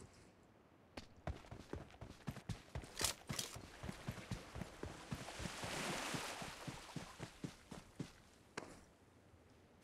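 Footsteps run quickly over ground and grass.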